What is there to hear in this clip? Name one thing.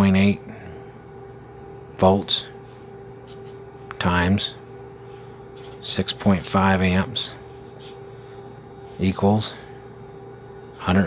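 A felt marker squeaks and scratches on paper.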